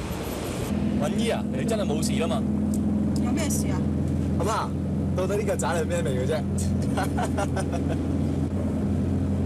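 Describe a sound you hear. A middle-aged woman answers.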